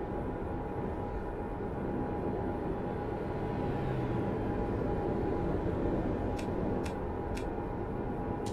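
Tyres hum on a road surface.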